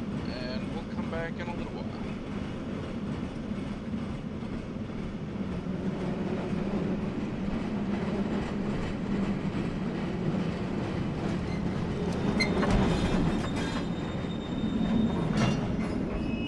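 A mine cart rumbles steadily along rails through a tunnel.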